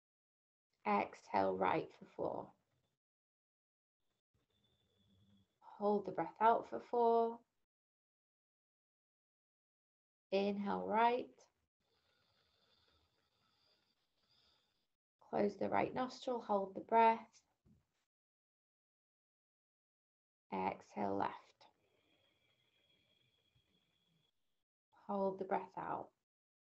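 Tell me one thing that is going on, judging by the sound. A woman speaks calmly in short phrases through an online call.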